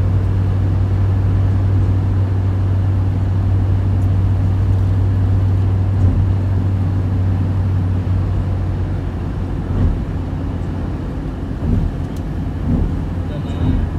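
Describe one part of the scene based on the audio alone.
A vehicle engine hums steadily from inside a moving car.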